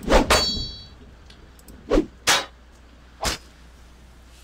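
Weapons clash in a short fight.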